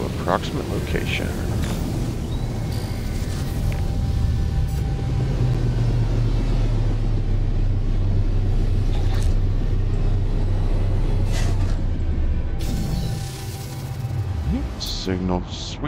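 A spaceship engine rumbles steadily and winds down as it lands.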